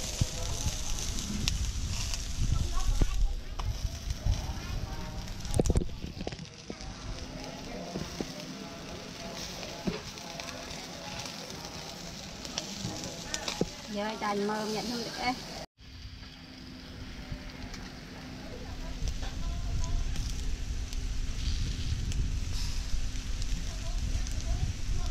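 Skewered chicken sizzles on a grill over charcoal.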